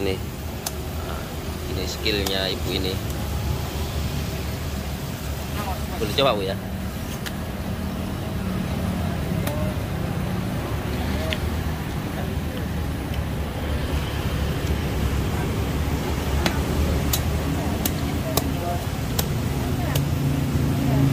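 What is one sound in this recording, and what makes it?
A cleaver knocks and chops against a spiky fruit husk.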